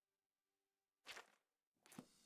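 A paper page flips over with a quick rustling swish.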